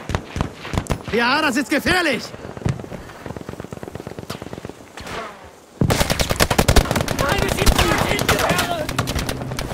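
Pistol shots crack out sharply, one after another.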